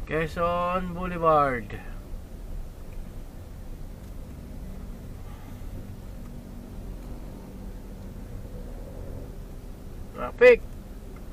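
A car engine hums low and steady in slow traffic.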